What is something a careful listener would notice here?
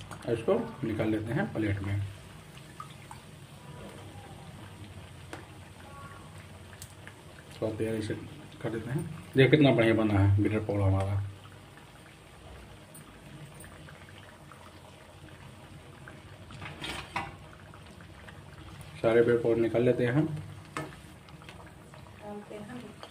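Oil sizzles and bubbles steadily as food fries.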